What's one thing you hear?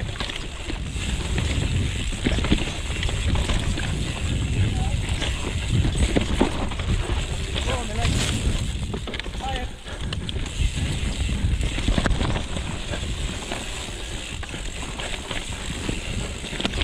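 Bicycle tyres rattle and crunch over a rough dirt trail.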